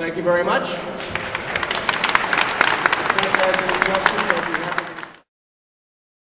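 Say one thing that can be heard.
A crowd applauds loudly in a large echoing hall.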